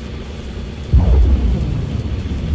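A distant explosion booms.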